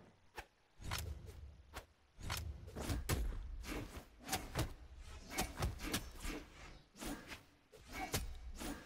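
Weapons swing and strike in quick, punchy bursts.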